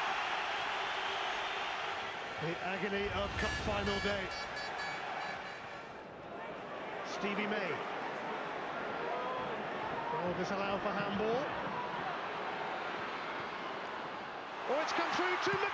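A large stadium crowd murmurs and chants steadily outdoors.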